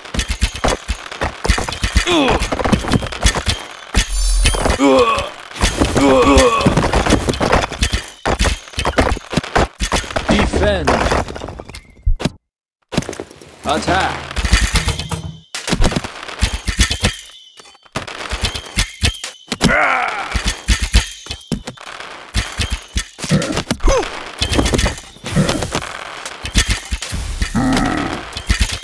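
Swords and arrows clash and clatter in a busy battle.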